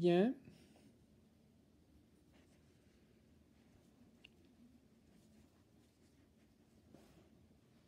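Yarn rustles softly as a crochet hook works through stitches.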